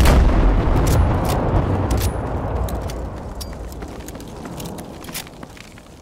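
A deep explosion booms and slowly rumbles away.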